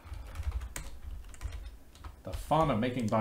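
Keys clatter on a keyboard.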